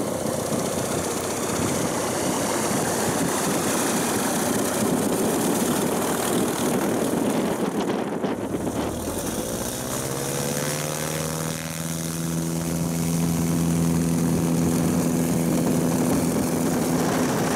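A small propeller plane's engine drones loudly nearby.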